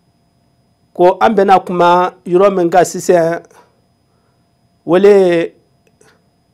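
An older man speaks calmly and close through a microphone, in short phrases with pauses.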